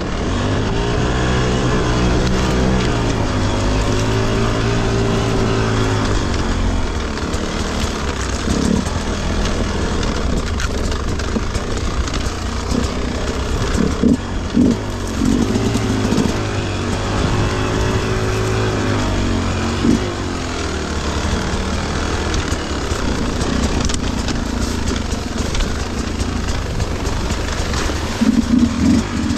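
Tyres crunch over dry grass and stones.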